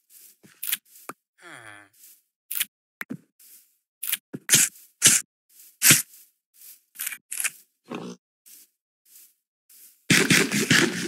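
Leafy bushes rustle as berries are picked.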